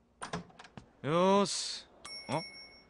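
A young man calls out a greeting.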